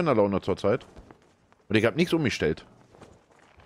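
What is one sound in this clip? A man speaks loudly and with animation into a close microphone.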